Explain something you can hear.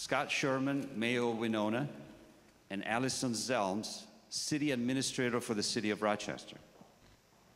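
A man speaks into a microphone, his voice echoing through loudspeakers in a large hall.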